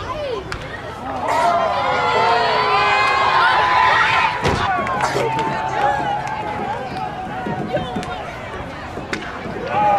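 A bat sharply cracks against a ball.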